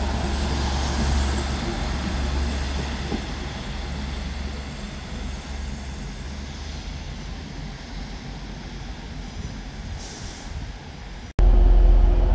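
A passenger train rolls past on the tracks and fades into the distance.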